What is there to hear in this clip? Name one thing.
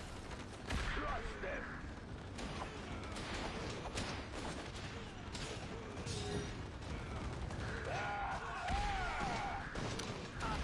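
Explosions boom with a low rumble.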